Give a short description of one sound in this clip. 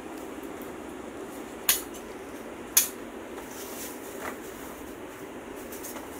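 Plastic tubing rustles and knocks as a man handles it.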